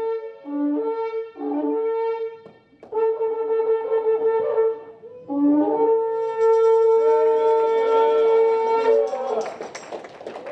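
A horn blows long, steady blasts in an echoing hall.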